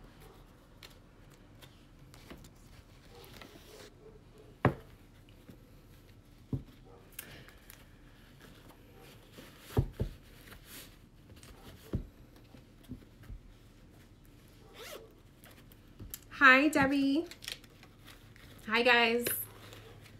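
Small objects knock and rustle as they are handled.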